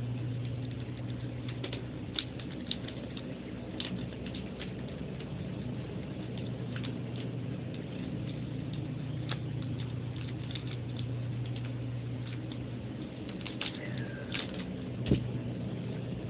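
Small plastic parts click and tap in someone's hands.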